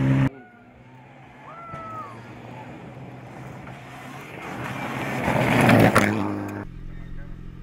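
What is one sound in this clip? Tyres throw up gravel on a dirt road.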